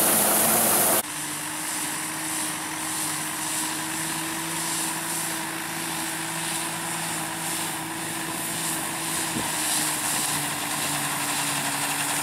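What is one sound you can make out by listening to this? A tractor engine idles steadily.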